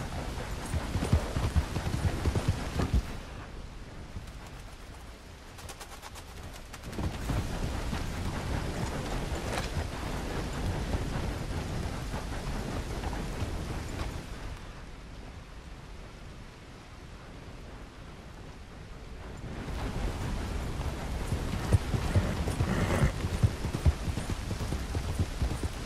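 A horse's hooves thud steadily on a dirt track.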